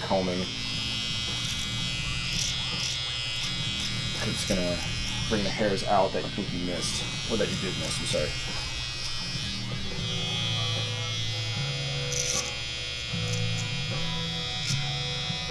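An electric trimmer buzzes steadily, close by.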